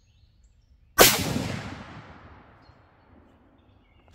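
A rifle fires a single loud shot that echoes away outdoors.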